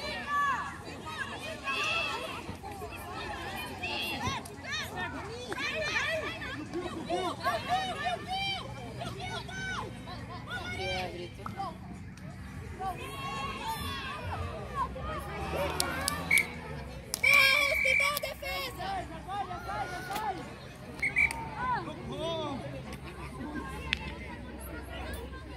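Young women shout and call out nearby outdoors.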